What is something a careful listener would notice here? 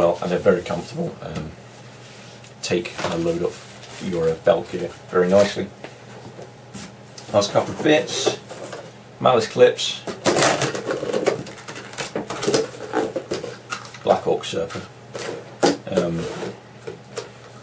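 A young man talks casually close to the microphone.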